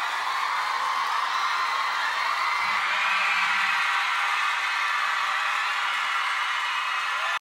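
Loud pop music plays.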